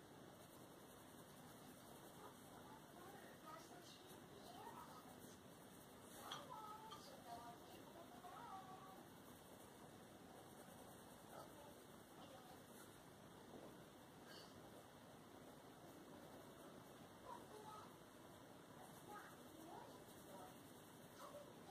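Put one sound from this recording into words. A colored pencil scratches softly across paper.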